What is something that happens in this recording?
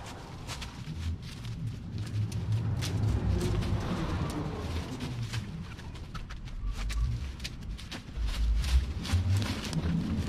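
Branches and dry vines crackle and rustle as they are dragged.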